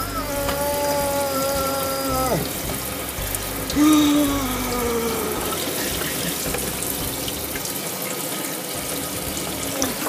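Water sprays from a faucet into a metal sink.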